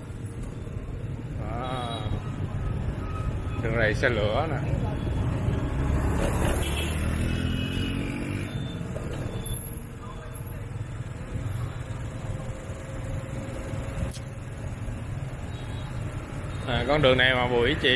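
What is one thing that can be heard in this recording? Motorbike engines hum and drone steadily in passing street traffic.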